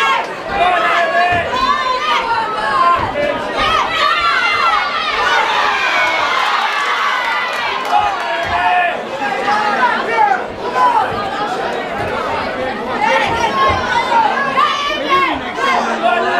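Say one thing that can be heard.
Boxing gloves thud against each other in quick punches.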